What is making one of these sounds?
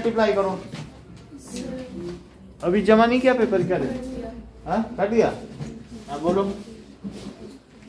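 A middle-aged man speaks calmly nearby, in a room with a slight echo.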